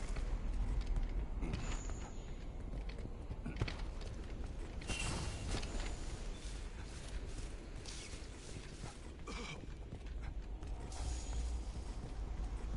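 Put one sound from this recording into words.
Footsteps crunch over rough ground at a run.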